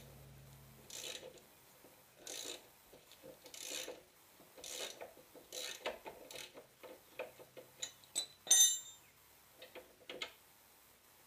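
A ratchet wrench clicks as a bolt is turned.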